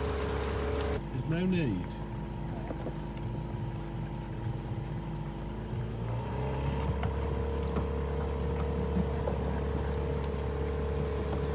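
A small boat motor hums steadily.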